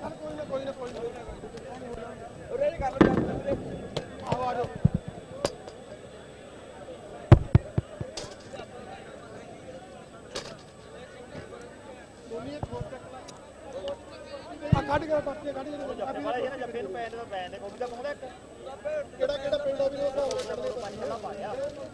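A crowd of men chatters loudly outdoors close by.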